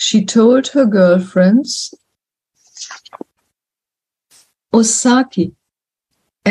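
An elderly woman speaks calmly over an online call, with pauses.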